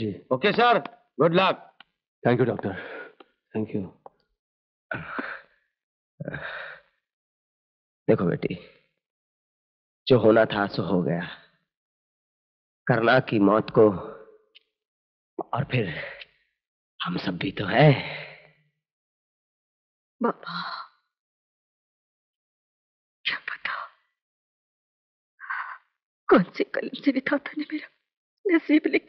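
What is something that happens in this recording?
Men speak in turns, calmly and close by, with pauses between lines.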